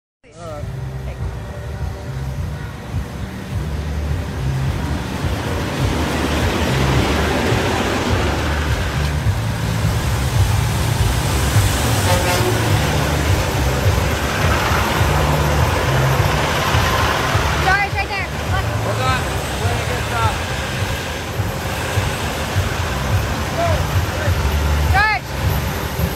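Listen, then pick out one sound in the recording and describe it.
Big truck engines idle with a deep, steady rumble nearby.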